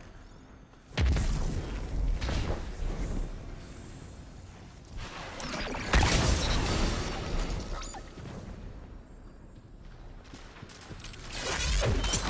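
A heavy gun fires loud blasts with booming echoes.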